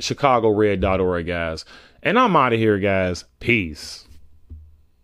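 A young man speaks emphatically into a close microphone.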